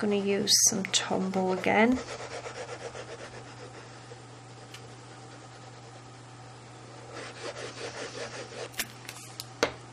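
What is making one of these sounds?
A glue pen scratches softly across paper.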